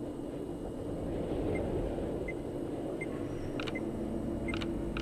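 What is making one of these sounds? A radio hums with low, steady static.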